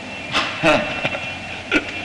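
A man laughs loudly.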